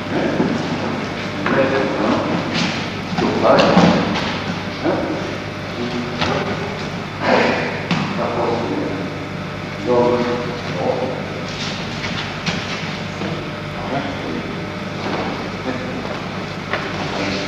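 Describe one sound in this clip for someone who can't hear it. A body thumps onto a padded mat.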